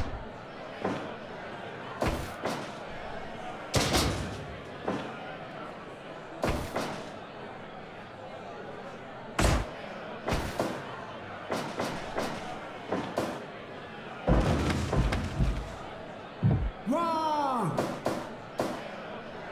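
Heavy blows and slams thud repeatedly.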